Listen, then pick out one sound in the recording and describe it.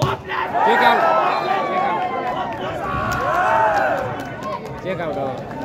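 A large crowd of spectators shouts and cheers outdoors.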